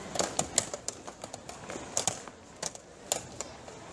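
A hand presses a chess clock button with a sharp click.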